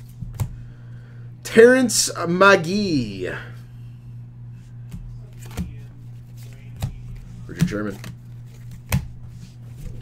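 Trading cards click and rustle as they are handled.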